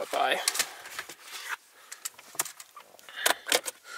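Plastic trim clicks and rattles as it is pried loose.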